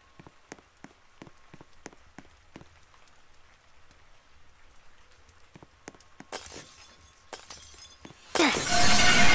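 Footsteps tap steadily on a hard floor.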